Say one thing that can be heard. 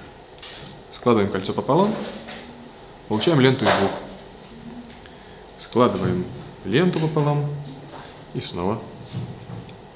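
A man talks calmly and clearly, close by.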